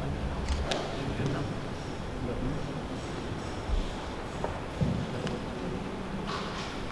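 A man speaks quietly through a mask.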